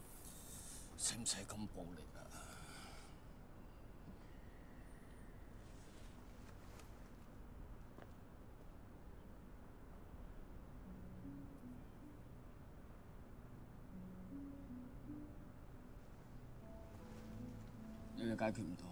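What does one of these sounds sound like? A middle-aged man speaks with mild surprise nearby.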